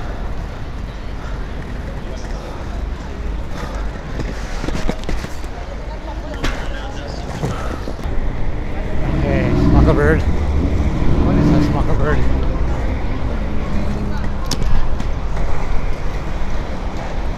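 Inline skate wheels roll and rumble over pavement close by.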